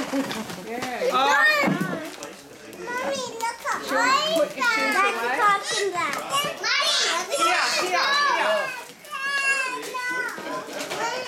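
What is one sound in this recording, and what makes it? Young girls chatter and exclaim excitedly close by.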